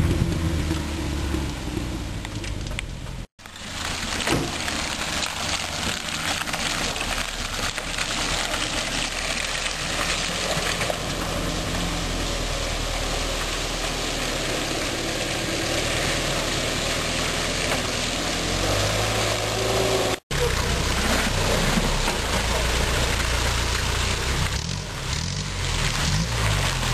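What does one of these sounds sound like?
An off-road vehicle's engine drones and revs nearby.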